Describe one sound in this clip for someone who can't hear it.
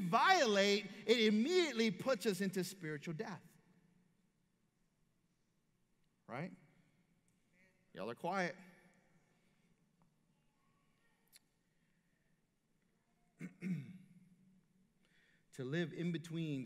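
A man speaks with animation through a microphone, with pauses, in an echoing hall.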